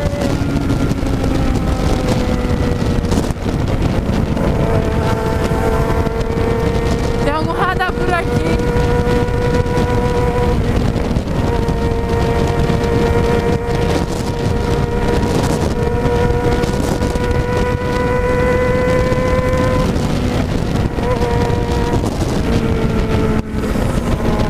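A motorcycle engine hums steadily at speed, its pitch holding level.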